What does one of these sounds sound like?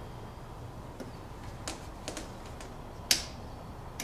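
Meter probes click and tap against a metal light fitting.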